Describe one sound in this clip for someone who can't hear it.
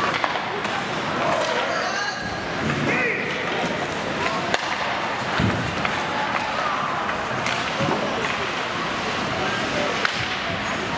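Hockey sticks clack against the puck.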